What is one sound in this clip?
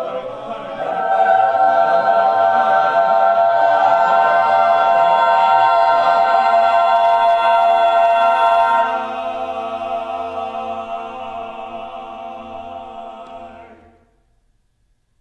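A mixed choir sings in harmony in an echoing hall and the final chord fades away.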